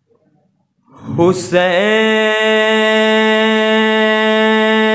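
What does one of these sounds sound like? A young man sings a long, steady held note through a microphone.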